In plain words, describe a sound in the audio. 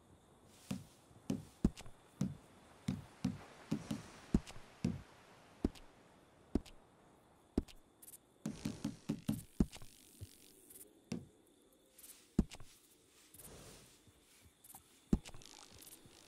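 Short menu clicks and ticks sound again and again.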